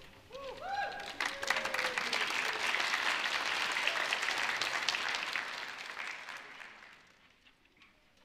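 An audience applauds loudly, then the applause fades.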